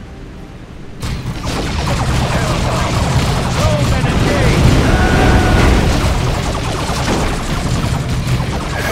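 Weapons clash and shots crackle in a noisy battle.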